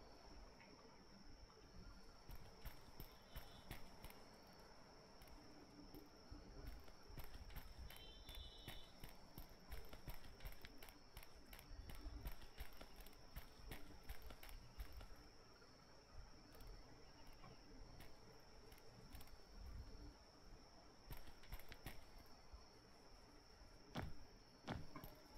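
Footsteps crunch steadily on rough ground.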